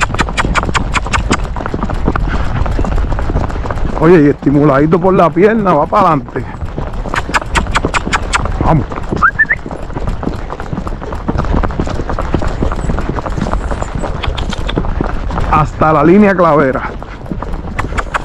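A horse's hooves clop steadily on a paved lane.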